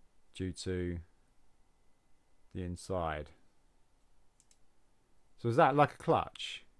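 A man speaks calmly into a microphone, in short phrases.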